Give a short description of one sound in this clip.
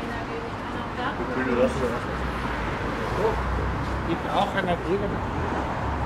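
An elderly man and woman talk quietly nearby as they walk past.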